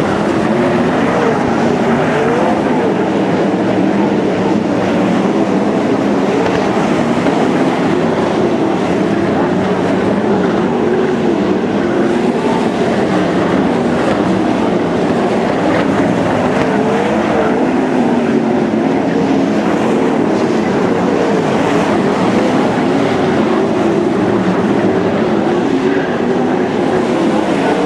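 Several race car engines roar loudly, rising and falling in pitch.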